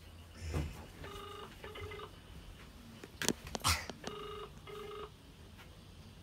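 A phone ringing tone beeps quietly through a speaker.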